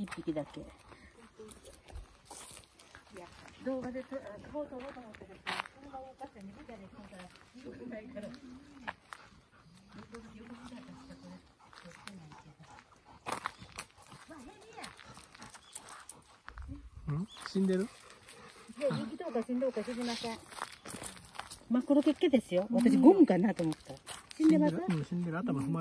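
Footsteps scuff on a gritty path.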